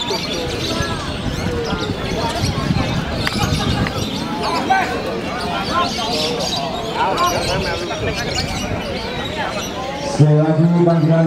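A crowd of men chatters and calls out outdoors.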